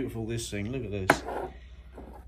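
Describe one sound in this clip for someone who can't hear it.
A light plastic model is set down on a wooden table with a soft knock.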